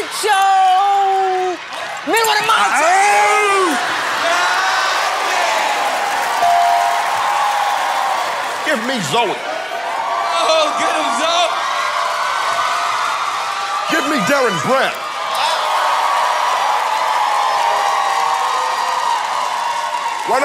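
A large audience cheers and whoops loudly in an echoing hall.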